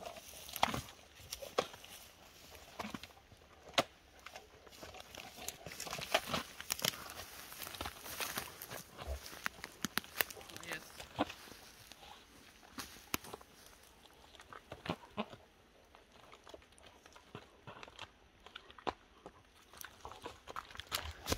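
Claws scratch and scrape on tree bark as an animal climbs.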